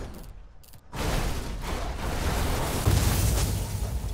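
Tyres rumble over rough dirt ground.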